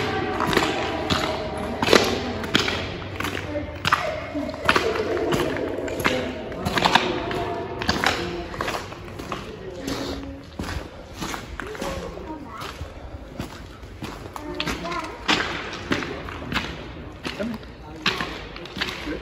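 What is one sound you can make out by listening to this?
Footsteps splash through shallow water, echoing in a tunnel.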